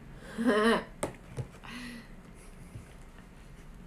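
Cardboard taps and rustles in a girl's hands.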